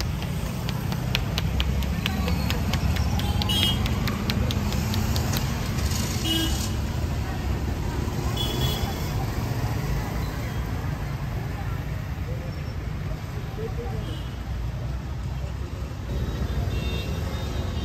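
Traffic rumbles steadily nearby outdoors.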